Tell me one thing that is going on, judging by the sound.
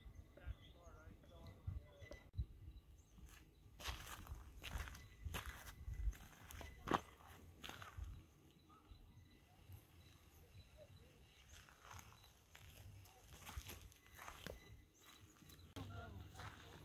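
Tall grass rustles and swishes against legs.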